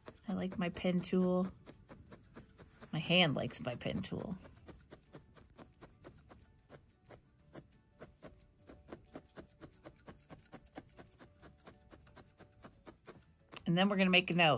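A felting needle stabs rapidly into wool with soft, quick ticks.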